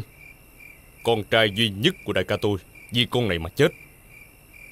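A middle-aged man speaks in a low, firm voice.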